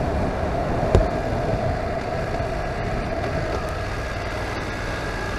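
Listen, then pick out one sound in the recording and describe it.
Wind buffets loudly against a helmet.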